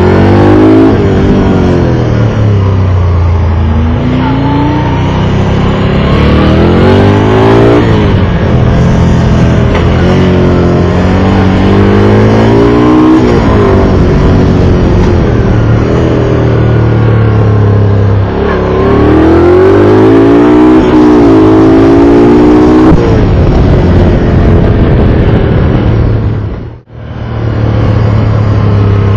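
A motorcycle engine roars loudly up close, revving up and down through the gears.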